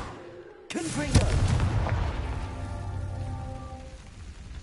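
A fire flares up with a whoosh.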